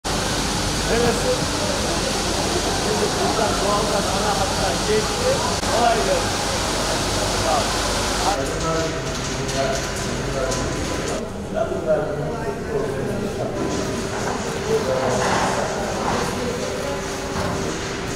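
Sorting machinery hums steadily.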